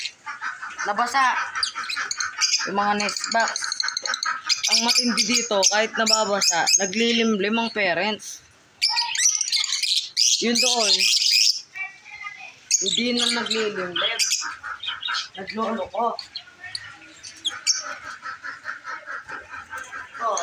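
Many small parrots chirp and screech busily nearby.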